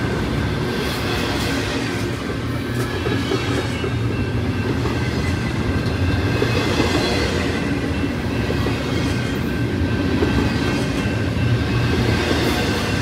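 A freight train rumbles past close by, its wheels clattering and squealing on the rails.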